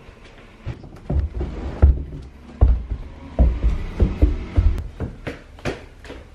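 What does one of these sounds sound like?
Bare feet thump on carpeted stairs.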